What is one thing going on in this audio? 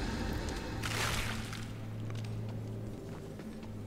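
Heavy armoured footsteps thud on a stone floor.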